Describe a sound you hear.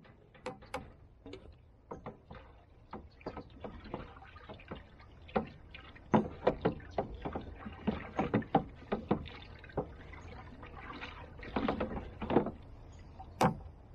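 Water sloshes in a barrel.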